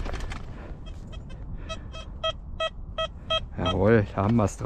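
A metal detector beeps in a quick steady series.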